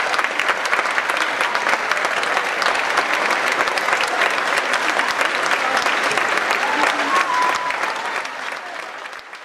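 An audience claps loudly in a large echoing hall, fading toward the end.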